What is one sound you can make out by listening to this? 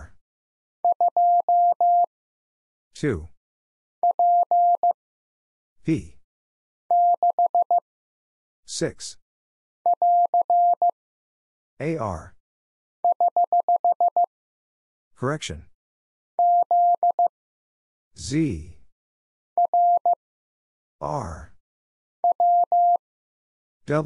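A telegraph key taps out short bursts of steady beeping Morse code tones.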